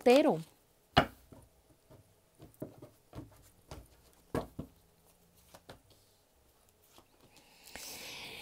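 Playing cards tap and slide softly onto a table.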